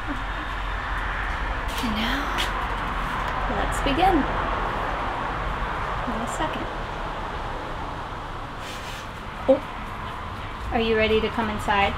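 A young woman talks close by in a lively way.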